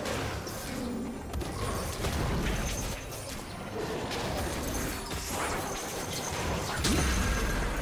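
Magical combat effects whoosh and crackle in a video game.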